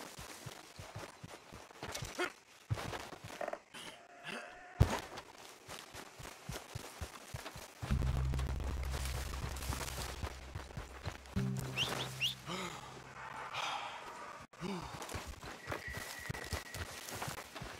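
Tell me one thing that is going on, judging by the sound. A man runs through tall grass, footsteps rustling and thudding.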